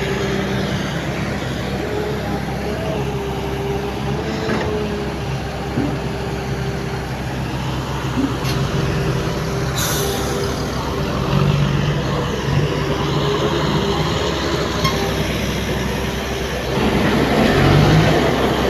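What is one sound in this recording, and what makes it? Dirt and rocks slide and tumble from a tipping truck bed.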